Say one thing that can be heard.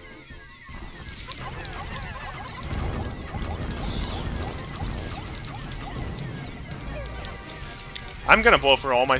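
Small creatures chatter and squeak in a swarm as they attack a large beast.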